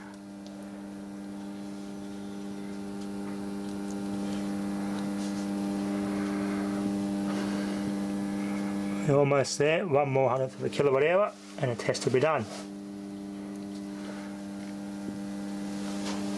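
An electricity meter gives off a steady low electrical hum.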